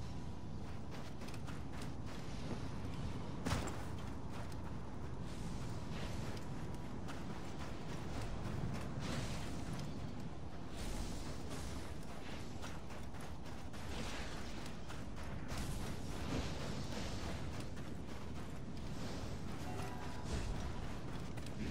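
Footsteps crunch quickly through soft sand.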